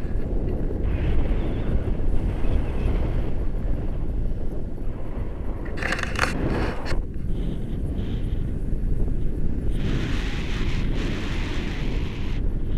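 Strong wind rushes and buffets loudly throughout.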